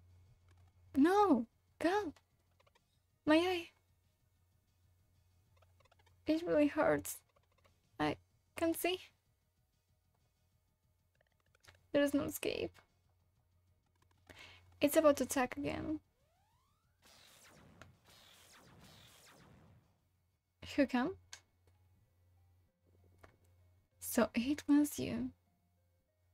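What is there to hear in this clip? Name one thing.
A young woman speaks with animation into a close microphone, reacting with exclamations.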